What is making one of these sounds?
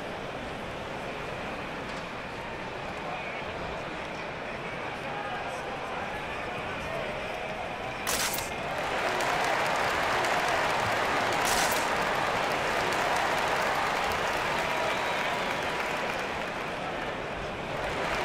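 A large arena crowd murmurs and cheers steadily.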